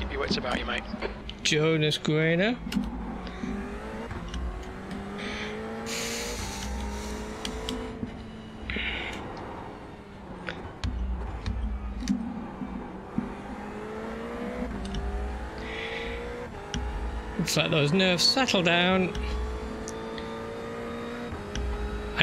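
A race car engine roars, revving up and down through gear changes.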